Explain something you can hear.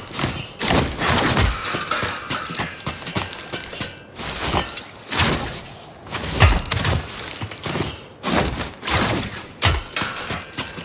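Heavy thuds sound as a man jumps and lands on metal.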